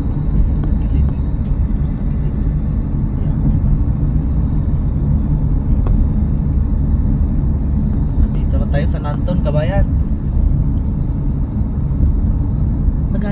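A car's engine and tyres rumble steadily on the road, heard from inside the car.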